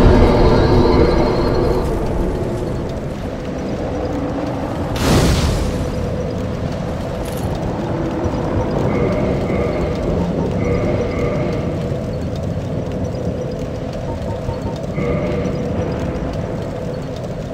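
A fire crackles and flickers.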